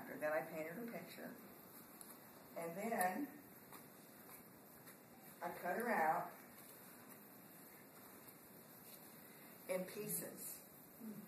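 A middle-aged woman speaks calmly in short bursts.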